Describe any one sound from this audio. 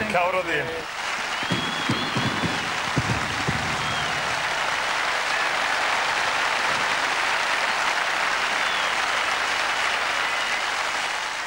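Fireworks crackle and pop outdoors.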